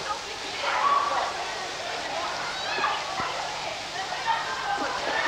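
Children call out nearby, echoing.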